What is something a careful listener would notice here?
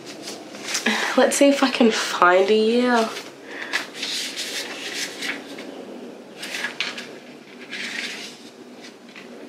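Book pages rustle as they are flipped.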